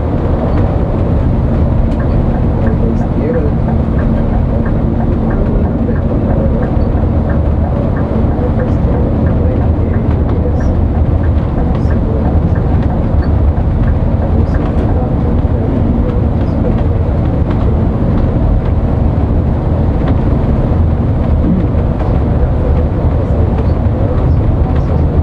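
Tyres rumble steadily on the road.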